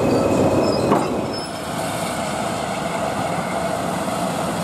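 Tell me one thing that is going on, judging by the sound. A steam locomotive approaches slowly along the track.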